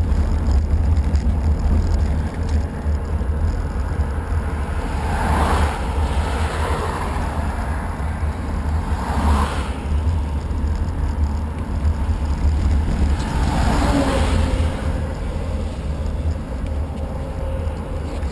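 Wind rumbles steadily against the microphone.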